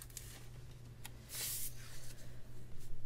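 A sticker peels off its backing paper.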